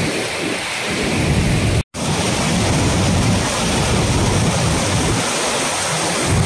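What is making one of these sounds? Floodwater roars and churns loudly over a weir.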